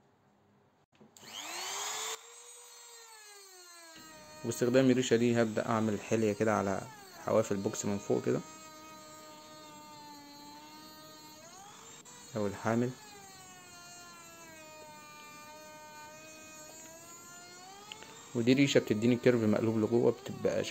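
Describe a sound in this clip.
A router motor spins up and whines steadily.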